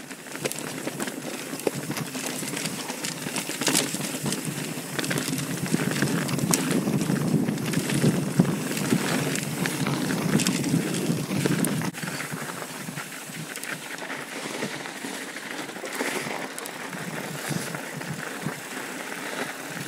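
Bicycle tyres rumble over a rocky dirt trail.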